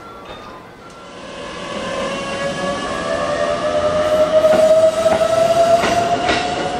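Another electric train's motor hums with a slowly rising whine as it moves.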